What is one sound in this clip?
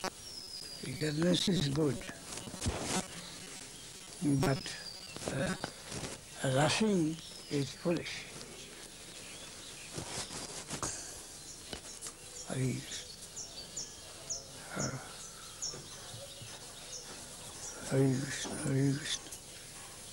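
An elderly man speaks calmly and close by, in short bursts with pauses.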